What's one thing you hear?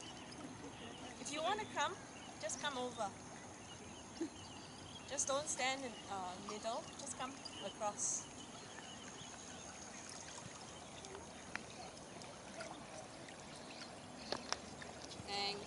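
Water splashes as otters swim.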